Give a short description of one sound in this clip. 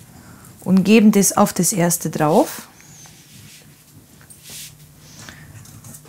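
Thin pastry sheets rustle softly as they are lifted and laid down.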